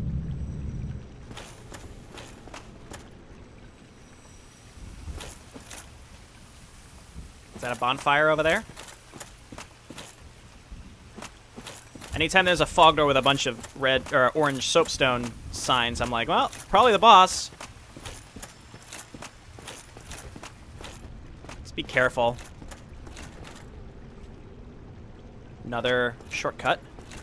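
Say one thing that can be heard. Armoured footsteps clank on stone and grass.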